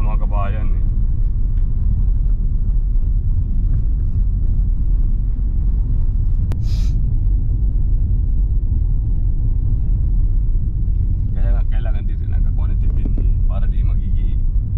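A car engine rumbles low and steady while driving.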